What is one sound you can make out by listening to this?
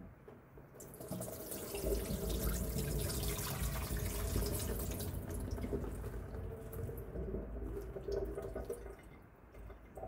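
Water and berries pour from a bowl into a plastic colander and splash into a sink.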